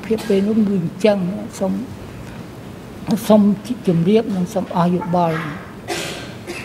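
An elderly man speaks slowly and haltingly into a microphone.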